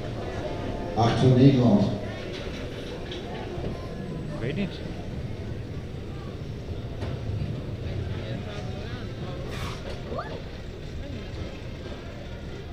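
A bobsled coaster car rumbles as it rolls along its track.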